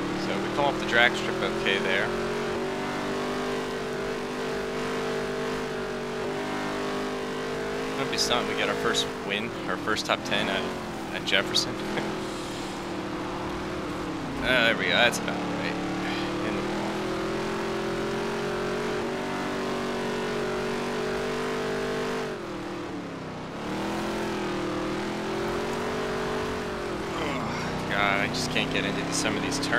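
A race car engine roars steadily, its pitch rising and falling as it speeds up and slows down.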